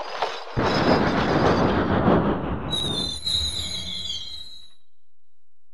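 A steam train chugs and hisses along the tracks.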